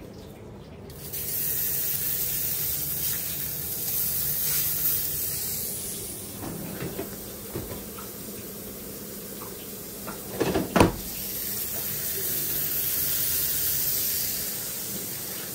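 Burgers sizzle loudly on a hot griddle.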